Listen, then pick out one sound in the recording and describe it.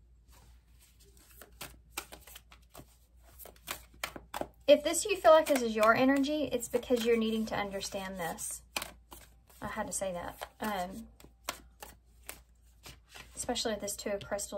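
Playing cards shuffle and riffle with quick soft clicks.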